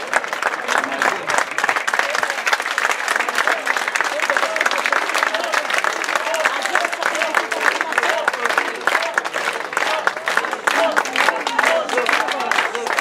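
A large crowd applauds outdoors.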